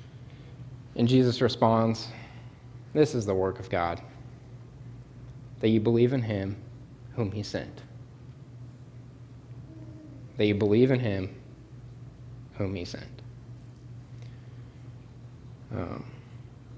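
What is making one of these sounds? A young man speaks calmly into a microphone, in short phrases with pauses, in a room with a slight echo.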